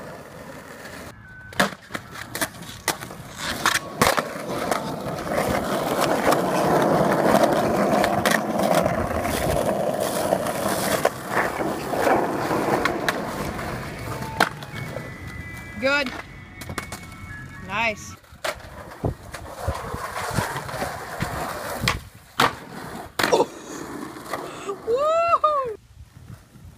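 Skateboard wheels rumble over pavement.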